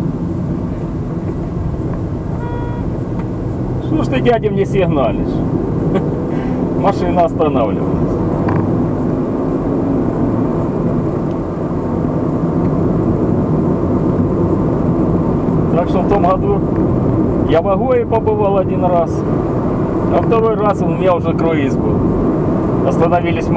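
Tyres roll steadily over a paved road.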